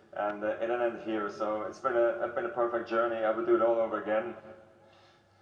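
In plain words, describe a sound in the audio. A middle-aged man speaks emotionally into a handheld microphone.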